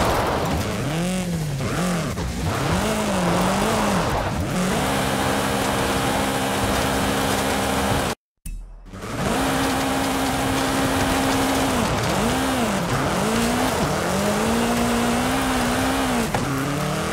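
Tyres crunch over dirt and brush.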